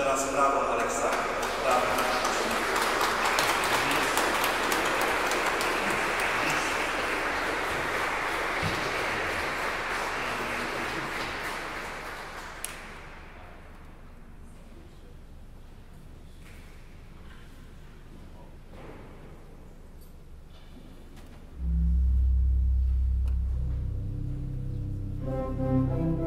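A pipe organ plays loudly, echoing through a large hall.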